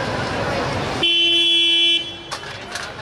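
An ambulance horn blares briefly and loudly.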